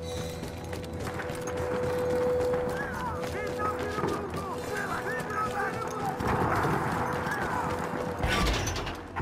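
Footsteps crunch on a stony path.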